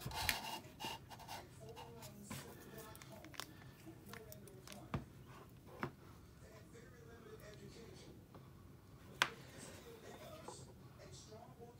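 Plastic plug connectors click and rattle in hands.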